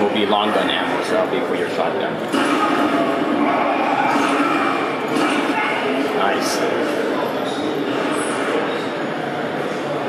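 Gunshots and blasts ring out from a video game, heard through a loudspeaker in a room.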